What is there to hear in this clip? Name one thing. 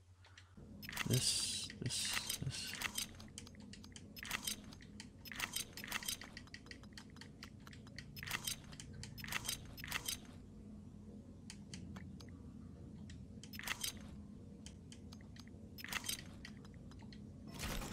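Short soft clicks sound as menu items are selected, one after another.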